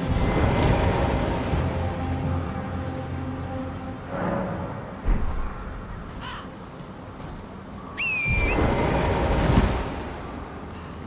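A magic spell shimmers and whooshes.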